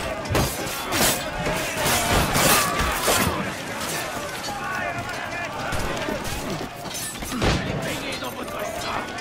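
Men shout and yell in battle.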